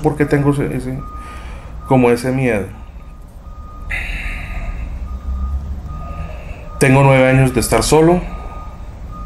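A middle-aged man speaks calmly on a phone close by.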